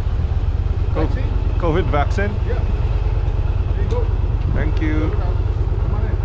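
A man speaks briefly and calmly close by.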